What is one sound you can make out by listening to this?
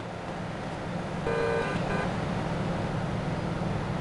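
A van engine hums nearby.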